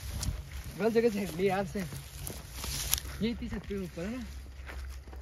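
A young man speaks loudly close by.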